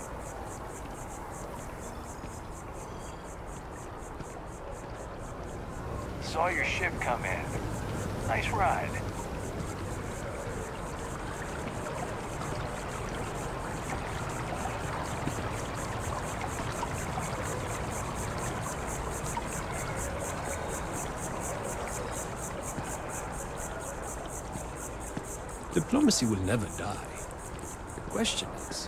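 Footsteps run quickly across a stone pavement.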